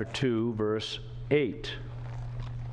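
A middle-aged man speaks briefly through a microphone.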